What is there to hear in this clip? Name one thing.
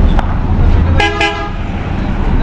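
A bus horn blares briefly.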